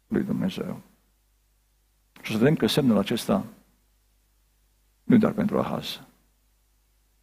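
A middle-aged man speaks with animation into a microphone, in short phrases with pauses.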